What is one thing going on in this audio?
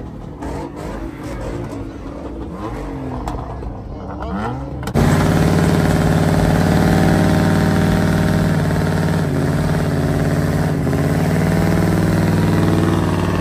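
A car engine revs and roars loudly.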